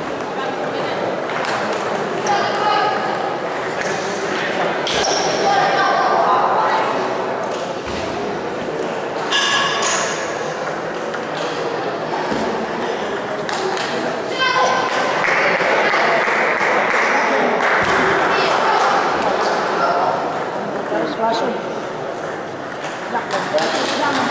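A table tennis ball clicks back and forth on paddles and a table in an echoing hall.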